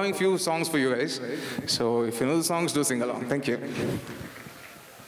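A young man sings through a microphone in an echoing hall.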